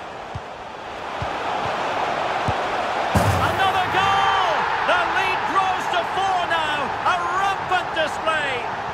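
A stadium crowd roars and cheers loudly.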